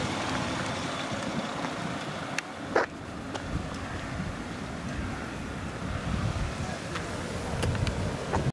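Wind rumbles and buffets outdoors.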